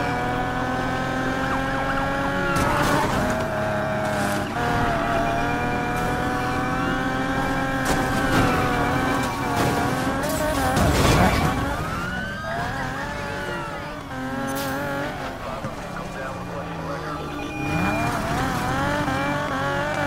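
A car engine roars at high revs.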